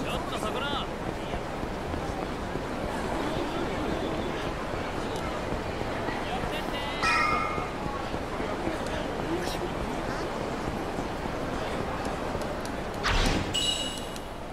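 A busy street crowd murmurs in the background.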